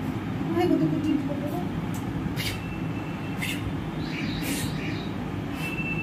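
A young woman makes kissing sounds close by.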